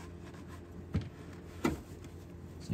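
A plastic engine part knocks and clicks as hands fit it in place.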